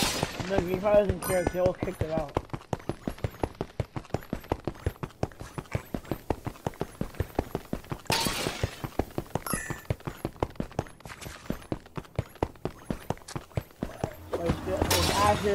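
Footsteps tap quickly and steadily on stone.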